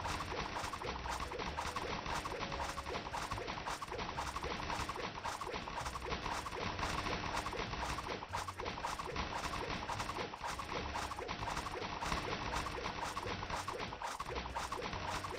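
Rapid game attack effects crackle and burst over and over.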